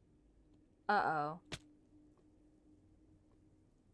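A body falls and lands with a thud.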